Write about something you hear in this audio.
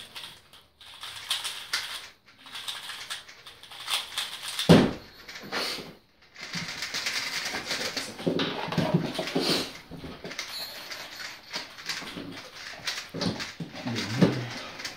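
Puzzle cubes click and rattle as they are twisted quickly.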